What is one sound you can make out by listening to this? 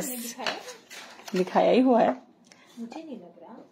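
Stiff paper rustles as hands handle it.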